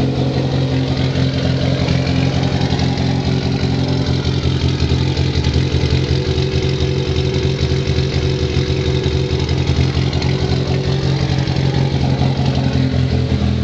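A car engine idles with a deep, steady exhaust rumble close by.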